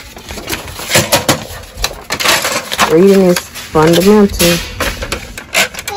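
Sheets of paper rustle as they are handled.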